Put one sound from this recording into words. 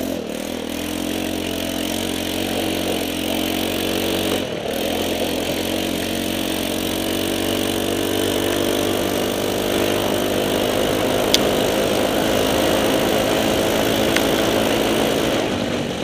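A small buggy's engine drones steadily close by, rising and falling in pitch.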